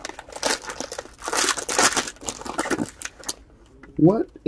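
A foil wrapper crinkles and tears as it is pulled open by hand.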